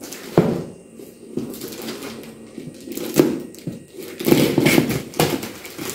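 Scissors snip through a plastic bag.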